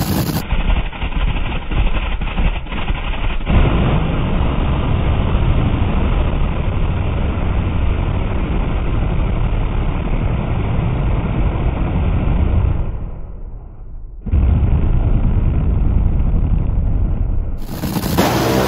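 A dragster engine roars deafeningly and fades as it speeds away.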